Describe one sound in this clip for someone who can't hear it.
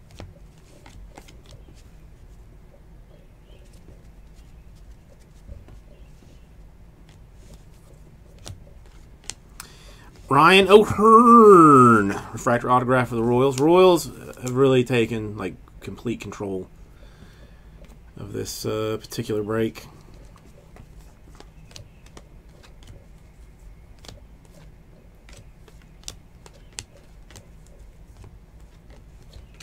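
Trading cards slide and flick softly as they are shuffled through by hand.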